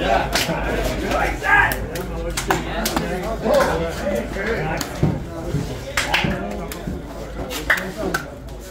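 Hands slap together in quick handshakes.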